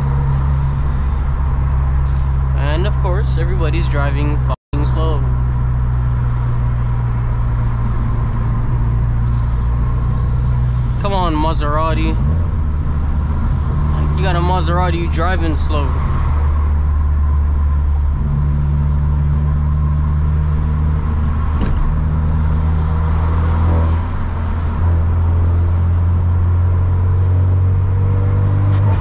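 A car engine drones steadily from inside the cabin, its pitch shifting as it changes gear.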